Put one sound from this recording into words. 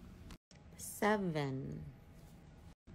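A young woman speaks close to a phone microphone in a drawn-out, sighing voice.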